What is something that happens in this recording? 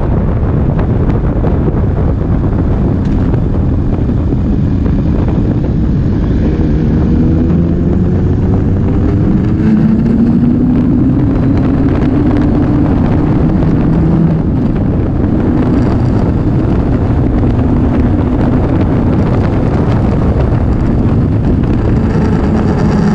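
A motorcycle engine hums steadily as it rides along a road.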